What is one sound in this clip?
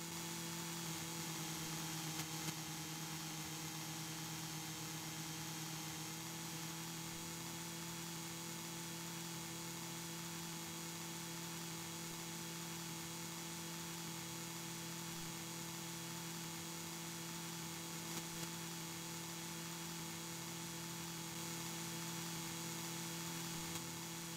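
A vehicle engine hums steadily at a constant pitch.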